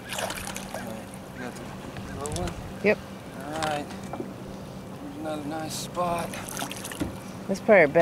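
A fish thrashes and splashes at the water's surface.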